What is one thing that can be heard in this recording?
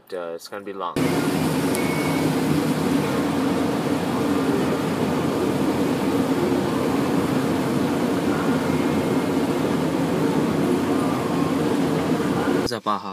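Rain and wind roar steadily against a moving car.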